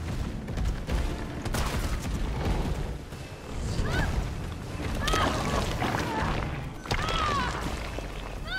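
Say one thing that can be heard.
A large creature growls and roars loudly.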